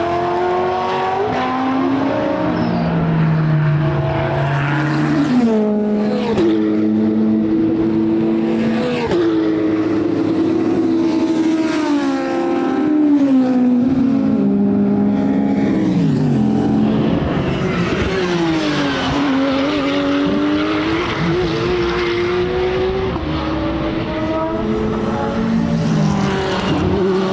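Racing car engines roar loudly, revving up and shifting gears as they speed past.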